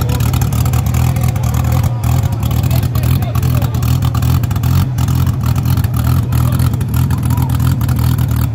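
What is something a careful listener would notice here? A racing car engine idles with a loud, deep, rough rumble close by.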